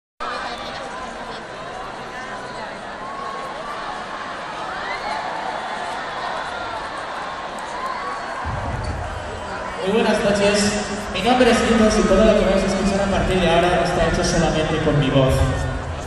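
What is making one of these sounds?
A large crowd cheers and screams in a huge echoing arena.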